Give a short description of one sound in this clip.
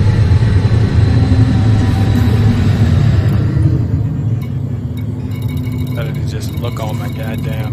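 A spacecraft engine hums low and steady.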